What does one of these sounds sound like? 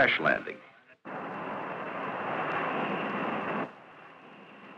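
A jet plane roars steadily as it flies past.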